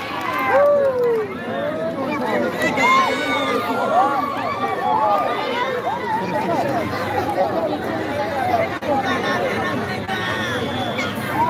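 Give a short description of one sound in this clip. A crowd of men and boys cheers and shouts excitedly outdoors.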